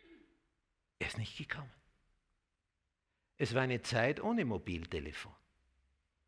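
An elderly man speaks clearly and with emphasis into a microphone, in short phrases with pauses.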